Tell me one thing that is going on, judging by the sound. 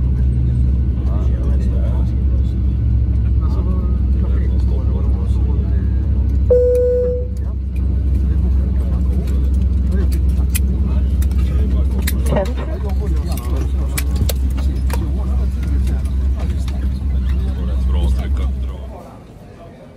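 A jet engine hums loudly and steadily, then cuts off.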